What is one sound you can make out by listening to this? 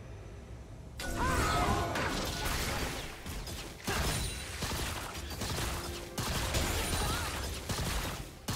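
Magic spells whoosh and burst in a video game fight.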